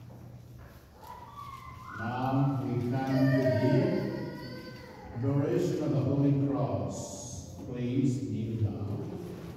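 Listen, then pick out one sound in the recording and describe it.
A man chants through a microphone in a large echoing church.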